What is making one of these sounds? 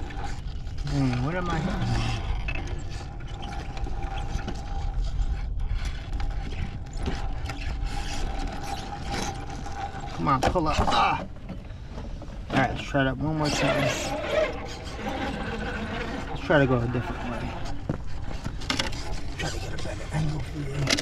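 Rubber tyres scrape and grind on rock.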